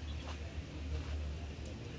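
A hand brushes against leaves with a soft rustle.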